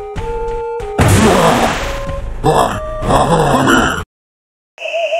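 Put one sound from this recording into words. A harsh electronic noise rushes and crackles.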